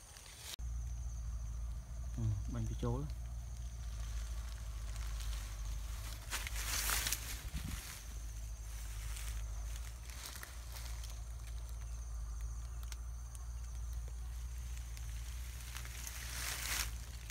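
Wind blows steadily across an open field.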